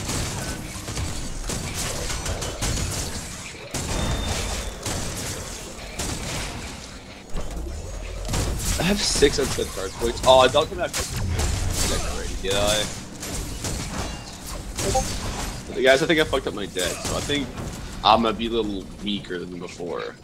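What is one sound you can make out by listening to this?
Energy weapons fire in rapid bursts with loud zaps and blasts.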